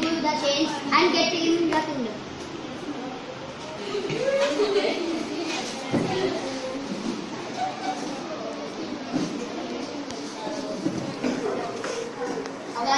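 Young boys talk and laugh close by in a small echoing room.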